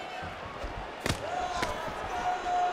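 Punches land with sharp thuds.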